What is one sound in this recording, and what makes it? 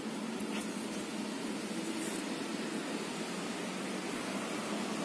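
Leaves rustle softly as a hand brushes through plants.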